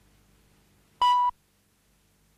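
A short, loud electronic beep sounds once.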